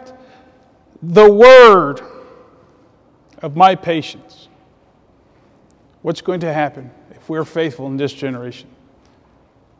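A middle-aged man speaks slowly and emphatically into a microphone in an echoing hall.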